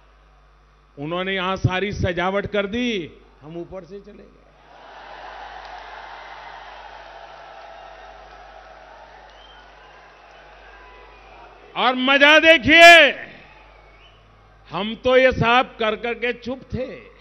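An elderly man speaks forcefully into a microphone over loudspeakers, in bursts.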